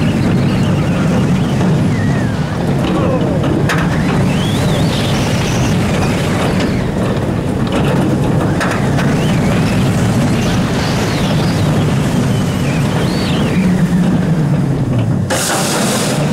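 Wind rushes past loudly at speed.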